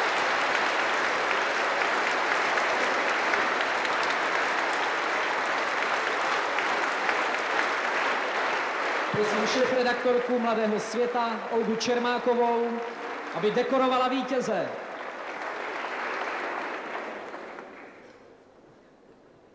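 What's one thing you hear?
A large audience applauds in an echoing hall, then fades.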